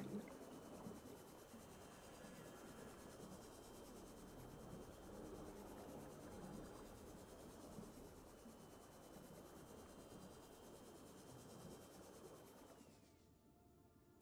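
A small submarine's engine hums steadily underwater.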